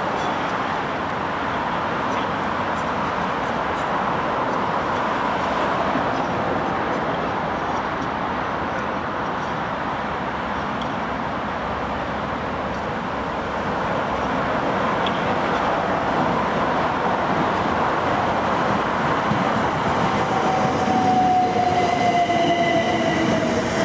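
An electric train approaches and rumbles past close by.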